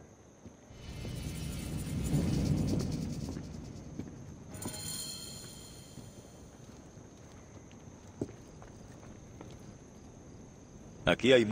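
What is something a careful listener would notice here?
Footsteps tread softly across a floor.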